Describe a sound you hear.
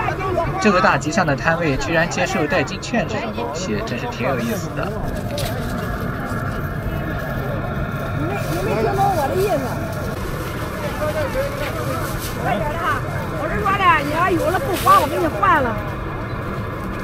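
A middle-aged woman talks with animation nearby.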